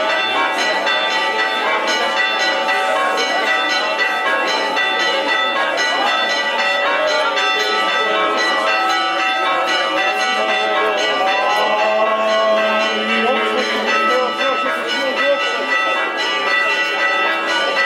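A crowd of men and women sings a slow hymn outdoors.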